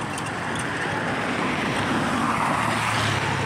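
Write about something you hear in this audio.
A car drives past close by, its tyres hissing on the road.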